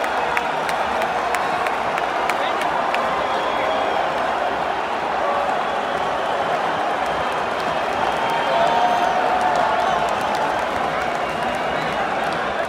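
A large stadium crowd roars and chants loudly in a huge open arena.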